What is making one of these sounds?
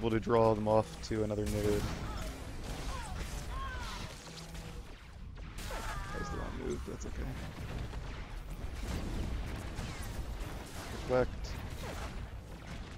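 Energy weapons crackle and zap in a fast battle.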